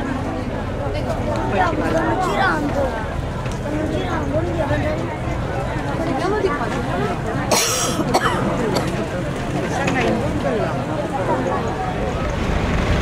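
A crowd of men and women talk and call out nearby, outdoors.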